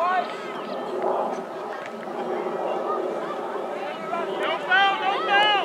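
Spectators shout and cheer excitedly nearby outdoors.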